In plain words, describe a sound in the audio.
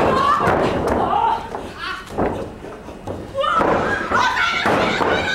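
Bodies thump and scuffle on a wrestling mat.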